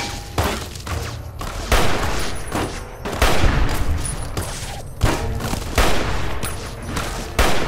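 A rifle fires loud, booming shots that echo away.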